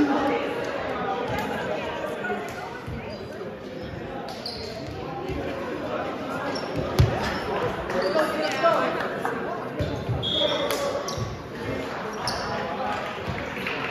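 Young men talk and call out across a large echoing gym.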